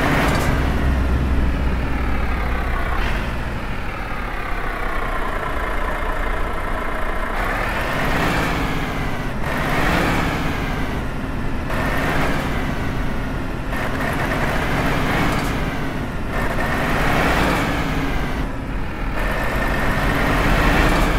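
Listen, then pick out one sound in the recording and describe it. A truck engine rumbles and revs up and down again and again.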